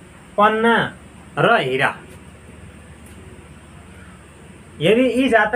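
A young man speaks calmly and close up, in short phrases with pauses.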